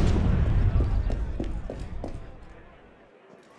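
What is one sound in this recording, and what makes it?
Footsteps thud up wooden stairs.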